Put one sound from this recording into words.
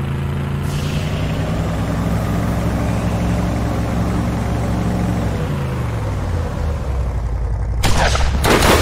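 A vehicle engine hums steadily, then drops in pitch.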